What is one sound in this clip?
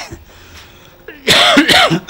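A man coughs.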